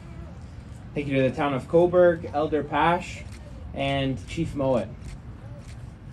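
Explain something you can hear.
A younger man speaks calmly through a microphone.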